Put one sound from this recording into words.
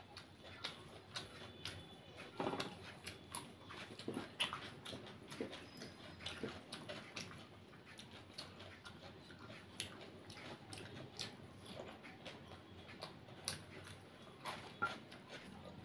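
Food crunches and tears as fingers break it apart.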